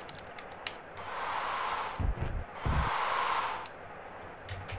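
A crowd roars and cheers in a video game.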